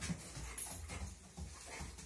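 A dog sniffs eagerly.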